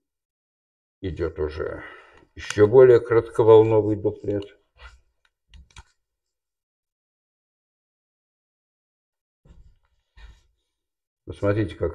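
A man lectures aloud nearby.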